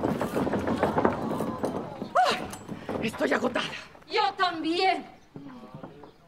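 A woman on stage speaks loudly with animation.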